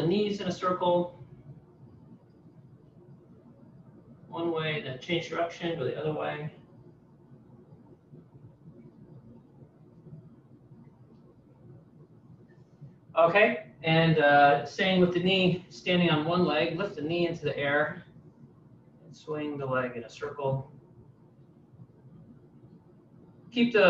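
A man speaks calmly and clearly into a nearby microphone.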